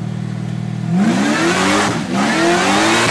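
A car engine revs up loudly and roars as the car speeds up.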